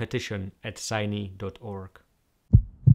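A young man speaks calmly and close.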